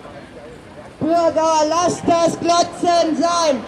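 A crowd of men and women chants loudly together.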